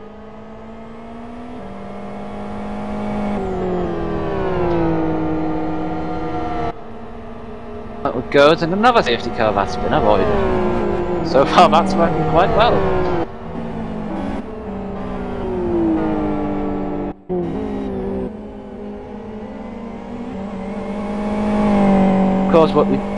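Racing car engines roar and rev up and down as the cars pass.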